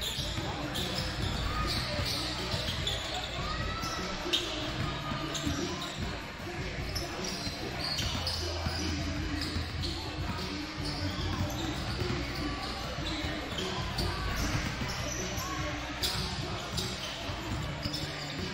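Basketballs bounce repeatedly on a hardwood floor in a large echoing gym.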